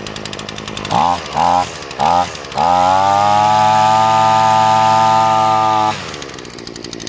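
A small two-stroke engine revs up loudly in short bursts, then holds a high whine.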